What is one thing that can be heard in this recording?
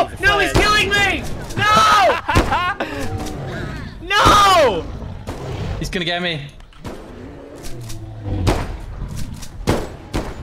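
Shotgun blasts boom sharply several times.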